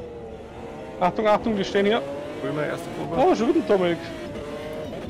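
Tyres screech loudly as a car slides through a corner.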